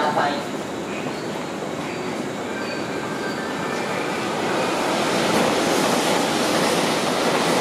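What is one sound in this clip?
A large crowd murmurs and shuffles on the platform.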